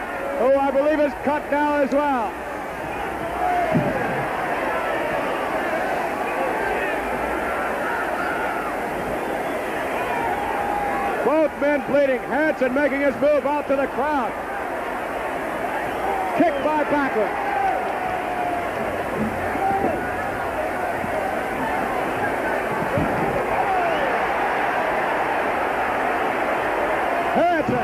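A large crowd cheers and shouts in a big echoing hall.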